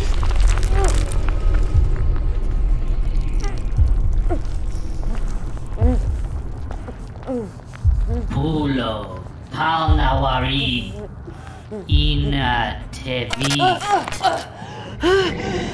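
A young woman cries out in muffled distress.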